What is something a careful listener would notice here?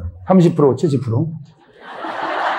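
A middle-aged man speaks animatedly through a microphone.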